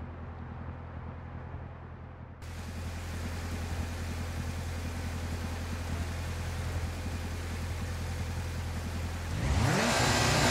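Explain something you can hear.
A rally car engine idles with a low, steady rumble.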